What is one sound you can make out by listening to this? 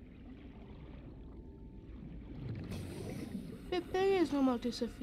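A low underwater rumble drones steadily.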